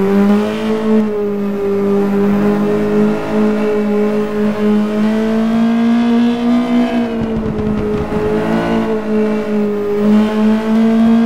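A race car engine roars steadily, its pitch dipping and rising with gear changes.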